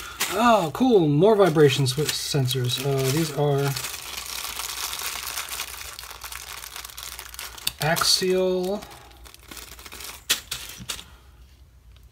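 A small plastic bag crackles as hands handle it.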